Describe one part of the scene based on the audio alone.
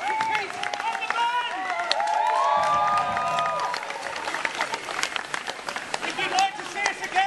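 A street drum band beats drums in a loose rhythm outdoors.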